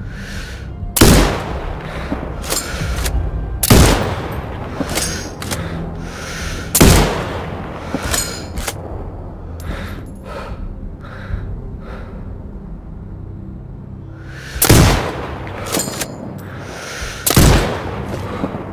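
A sniper rifle fires loud, sharp shots that echo briefly.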